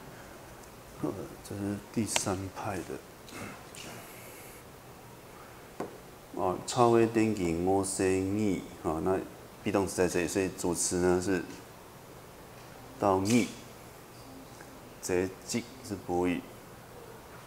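A middle-aged man speaks calmly into a handheld microphone, in pauses.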